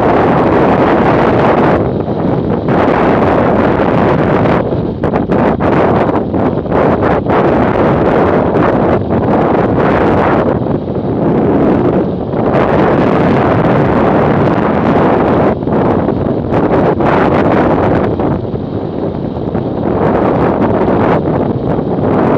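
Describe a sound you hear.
Wind roars loudly past a fast-moving motorcycle, with gusts that come and go.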